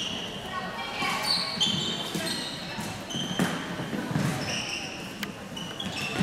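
Floorball sticks clack against the ball and each other.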